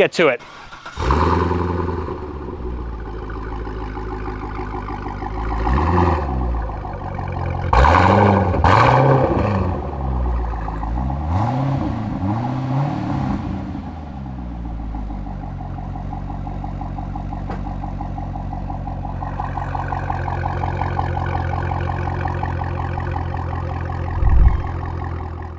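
A sports car engine idles with a deep, throaty rumble from the exhaust.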